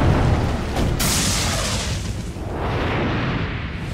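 A rocket roars through the air.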